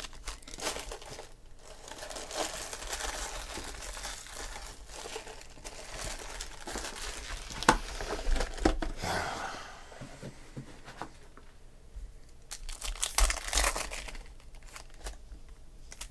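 Cards slide and tap on a table.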